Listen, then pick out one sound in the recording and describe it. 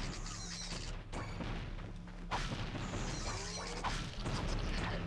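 Video game music plays steadily.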